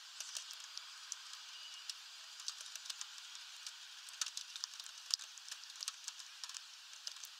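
Light rain patters steadily outdoors.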